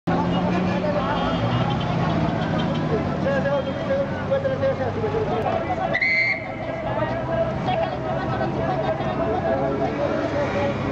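A busy street murmurs with many voices of passers-by.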